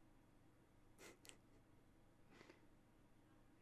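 A young man chuckles softly close to a microphone.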